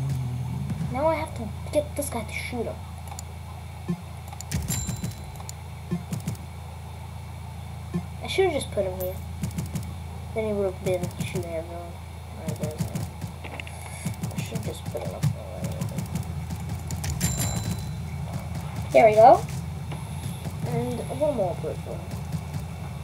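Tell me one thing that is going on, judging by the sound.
A boy talks with animation into a nearby microphone.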